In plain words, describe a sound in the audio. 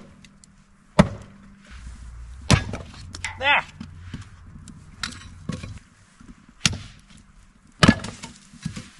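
A hatchet chops into wood with sharp knocks.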